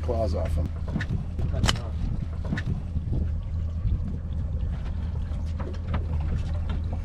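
A crab's claws scrape and tap against a plastic crate.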